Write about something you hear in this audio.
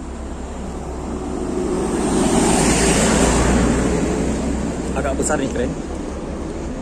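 A vehicle drives past nearby on a road, rising and then fading.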